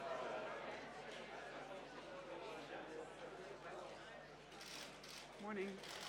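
People murmur and chatter in a large hall.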